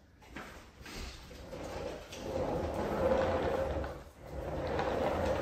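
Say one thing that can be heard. An upright vacuum cleaner hums steadily as it runs over a wooden floor.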